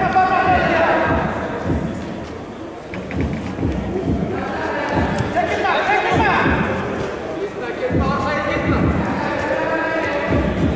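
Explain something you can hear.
Feet thud and shuffle on a wrestling mat.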